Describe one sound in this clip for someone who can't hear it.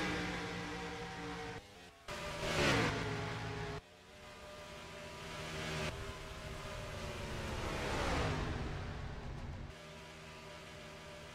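Racing car engines roar steadily at high speed.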